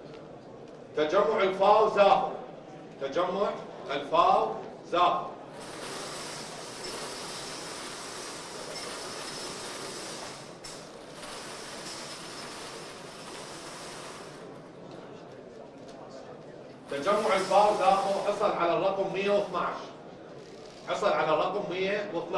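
A man reads out loudly through a microphone in a large hall.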